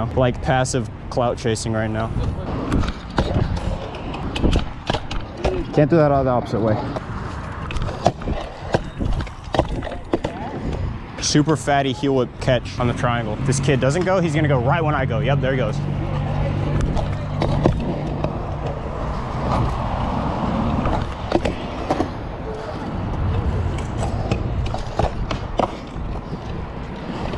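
Scooter wheels clack over cracks in the concrete.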